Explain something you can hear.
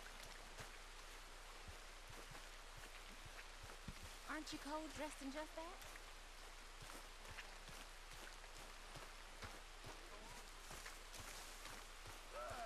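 Footsteps tread through wet grass.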